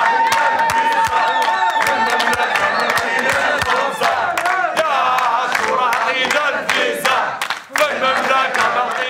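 A crowd claps hands in a steady rhythm.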